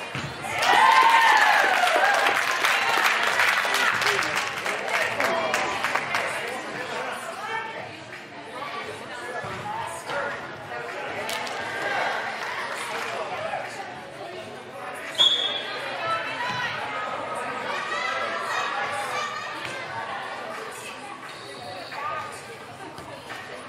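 Young women shout and call out to each other across an echoing indoor hall.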